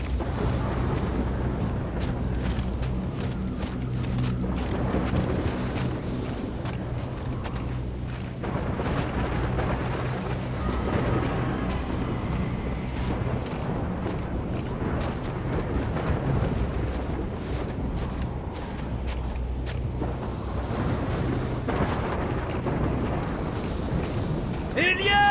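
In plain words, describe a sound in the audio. Strong wind howls steadily outdoors.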